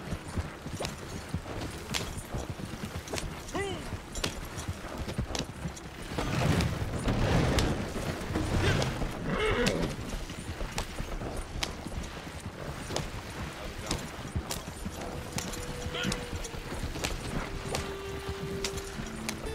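Horse hooves clop steadily along a dirt track.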